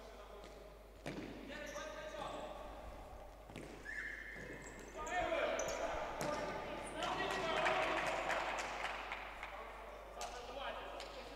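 A ball is kicked with sharp thuds in a large echoing hall.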